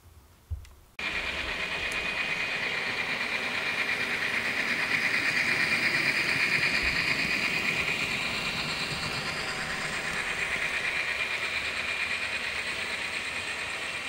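A small electric model train whirs steadily as it runs along the track.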